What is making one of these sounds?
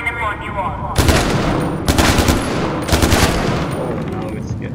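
Rapid gunfire rings out in loud bursts.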